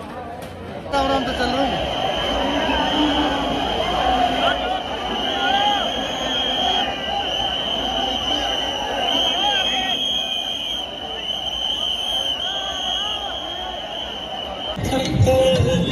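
A large crowd murmurs and calls outdoors.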